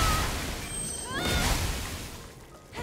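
Bright crackling zaps of electricity burst out.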